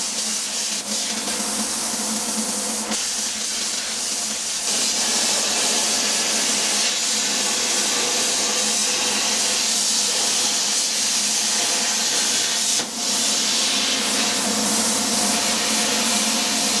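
A cutting machine's motors whir as the torch head moves.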